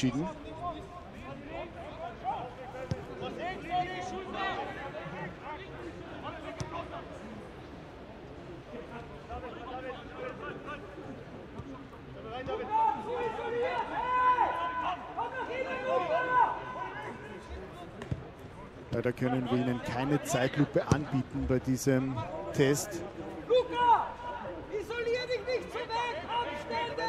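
Footballers shout and call to each other across an open pitch.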